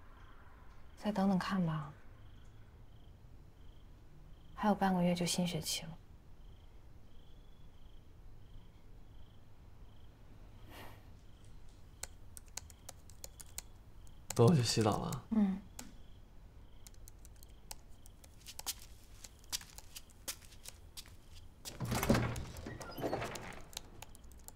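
A young woman speaks softly and calmly nearby.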